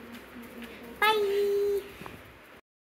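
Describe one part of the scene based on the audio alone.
A young girl squeals loudly.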